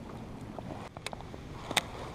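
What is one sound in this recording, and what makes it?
A fishing reel clicks.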